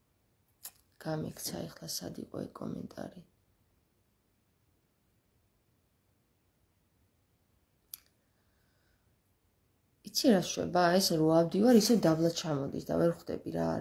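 A woman speaks calmly and close up.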